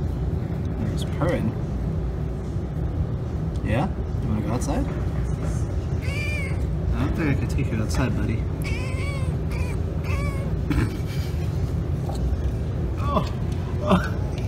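A cat chirps and chatters close by in short bursts.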